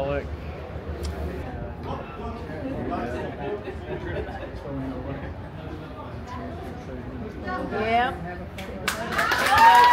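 A crowd of adults chats nearby.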